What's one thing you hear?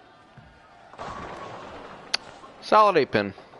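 Bowling pins crash and clatter as a ball strikes them.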